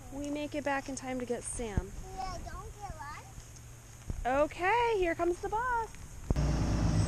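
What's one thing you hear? Young girls talk and sing in high voices close by.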